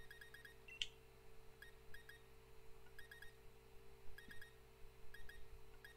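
Short electronic menu blips sound in quick bursts.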